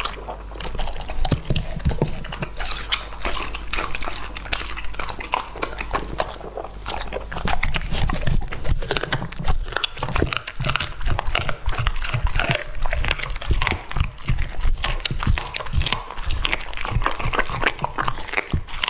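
A dog chews and crunches food noisily up close.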